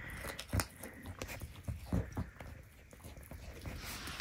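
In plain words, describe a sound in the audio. A goat chews food with soft crunching.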